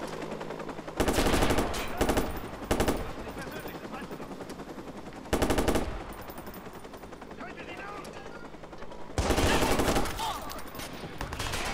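Bursts of rifle fire crack loudly.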